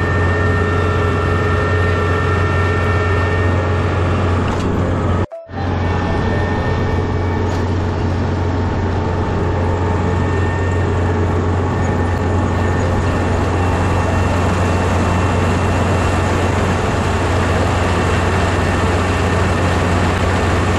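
A harvester engine drones loudly and steadily close by.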